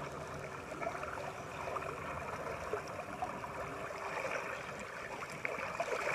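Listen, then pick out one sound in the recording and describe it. A large dog swims through lake water.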